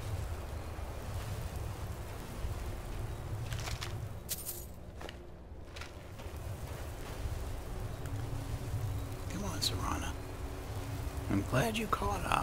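Magic energy crackles and hums steadily.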